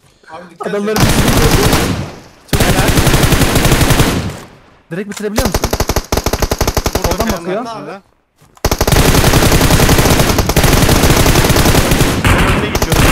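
Rapid gunfire rattles loudly in long bursts.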